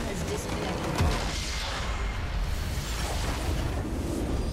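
A large structure explodes with a deep, rumbling boom.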